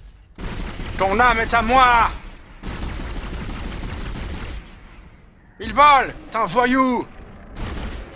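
A young man shouts loudly into a microphone.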